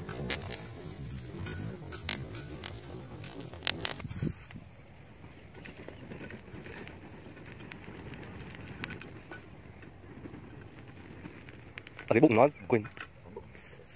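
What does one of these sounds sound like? Dry straw crackles as it burns.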